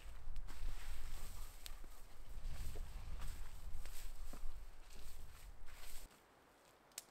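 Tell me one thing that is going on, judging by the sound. Twigs and gear rustle and crackle as a man works close by on the forest floor.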